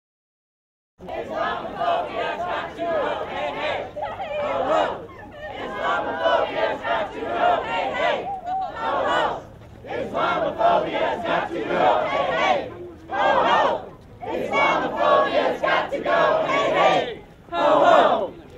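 A crowd of marchers talks and chants outdoors.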